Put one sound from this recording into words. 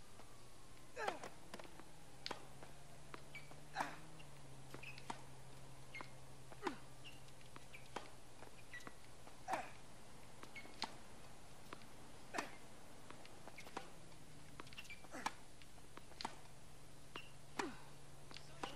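A tennis racket strikes a ball with sharp pops, back and forth.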